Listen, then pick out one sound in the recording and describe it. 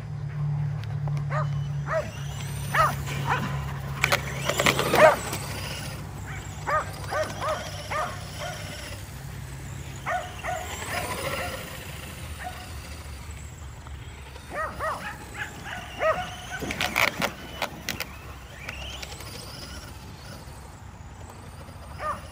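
A toy car's electric motor whirs as it races across grass.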